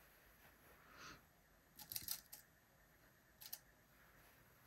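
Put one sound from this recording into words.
Fabric rustles softly as hands handle it.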